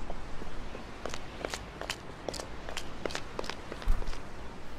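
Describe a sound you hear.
Footsteps patter quickly on soft ground.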